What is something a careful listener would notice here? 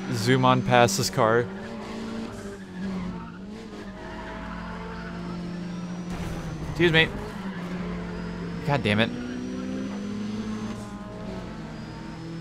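A car engine hums steadily and shifts in pitch as the car races.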